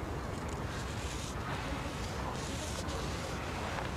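A paintbrush swishes and scrapes across a rough wall.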